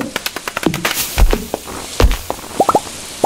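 A tree falls with a deep thud.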